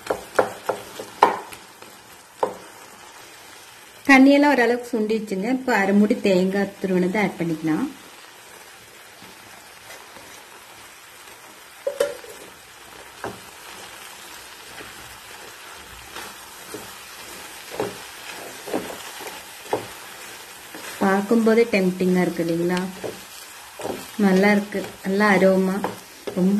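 A spatula stirs and scrapes thick food in a pan.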